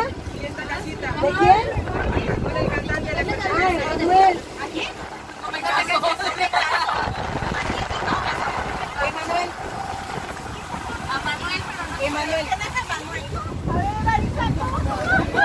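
Choppy sea water splashes against a boat.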